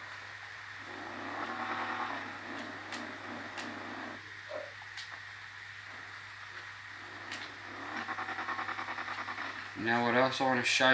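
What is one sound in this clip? A car engine hums and revs through a television speaker.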